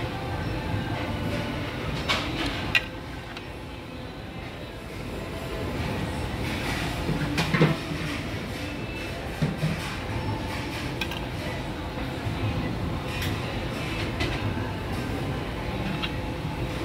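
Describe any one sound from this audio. Metal tongs clink and scrape against a metal tray.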